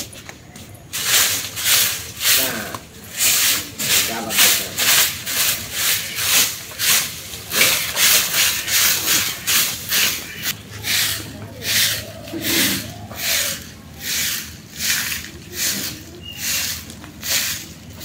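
A broom sweeps a dusty yard in quick, rhythmic strokes.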